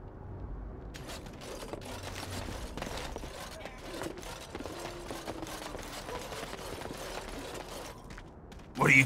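Footsteps crunch on gravel and dirt.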